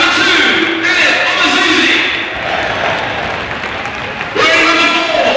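A crowd of fans sings and chants loudly in an open stadium.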